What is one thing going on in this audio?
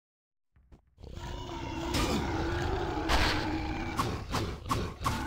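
Monsters snarl and growl.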